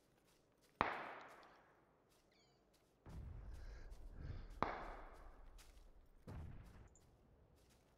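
Rifle shots crack in the distance and echo away.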